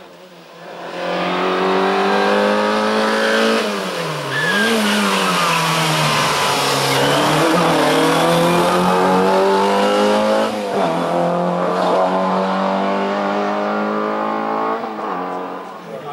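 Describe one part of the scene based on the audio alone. A race car engine roars up close, revving hard and dipping as it changes gear, then fades away.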